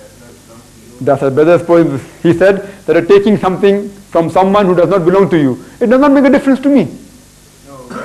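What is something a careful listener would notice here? A young man speaks with animation, close by, through a microphone.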